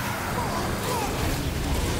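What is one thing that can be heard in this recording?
Swords clash and slash with sharp metallic hits.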